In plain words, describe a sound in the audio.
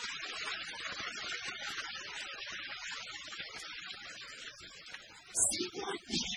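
An audience laughs and applauds loudly.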